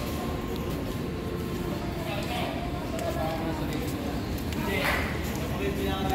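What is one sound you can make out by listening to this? A woman speaks to the microphone close by, muffled through a face mask.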